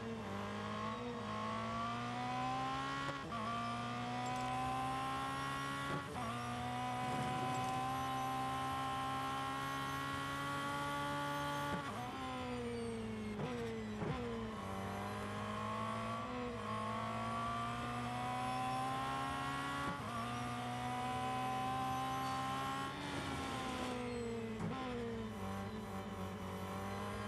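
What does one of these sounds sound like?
A racing car engine roars loudly, rising in pitch as it speeds up and dropping sharply at each gear change.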